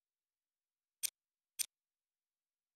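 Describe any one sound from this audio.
Two short menu blips sound in quick succession.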